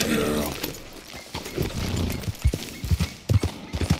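Horse hooves thud on a dirt trail.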